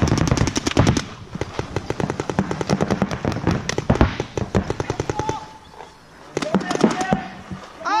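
Paintball markers fire shots outdoors.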